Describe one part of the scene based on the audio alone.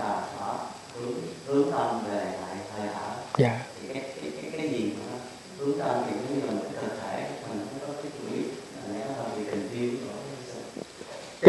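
An elderly man speaks calmly and slowly into a nearby microphone.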